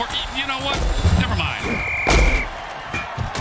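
Armoured players crash together in a heavy tackle.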